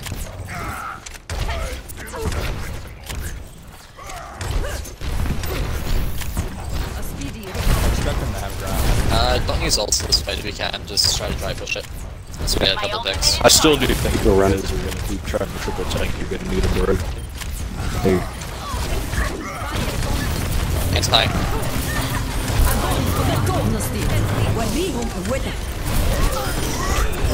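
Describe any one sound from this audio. A video game's energy weapon fires in rapid bursts.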